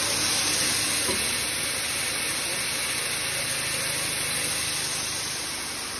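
Grain hisses as it pours into a paper sack.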